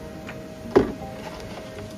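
A bowl knocks down onto a wooden counter.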